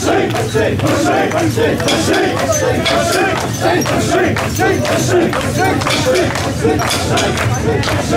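Metal rings on a carried shrine jingle and rattle.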